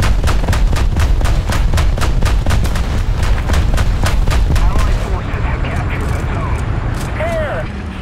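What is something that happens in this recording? A rapid-fire anti-aircraft autocannon fires in quick bursts.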